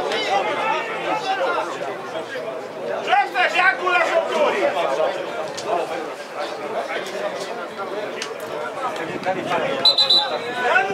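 Several men shout and argue at a distance outdoors.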